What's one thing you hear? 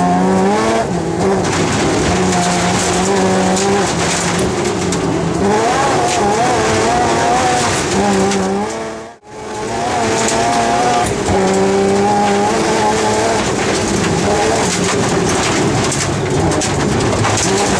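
A rally car engine roars and revs hard, its pitch rising and falling with each gear change.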